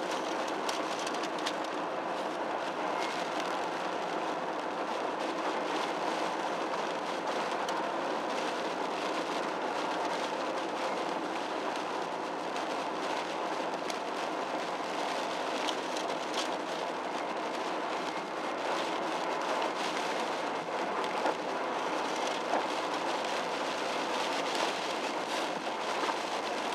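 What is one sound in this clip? Raindrops tap on the windscreen.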